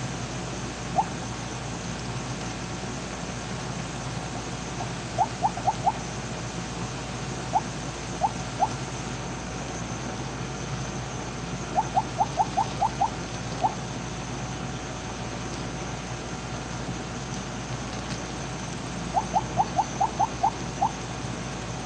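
Short bright electronic blips sound in quick bursts.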